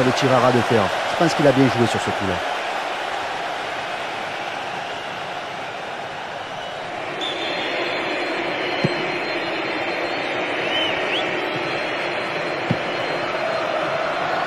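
A large stadium crowd roars and murmurs throughout a football match.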